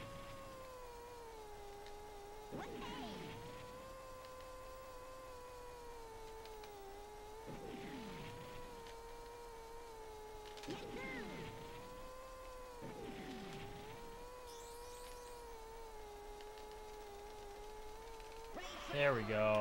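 A toy kart engine hums steadily, its pitch wavering as it races.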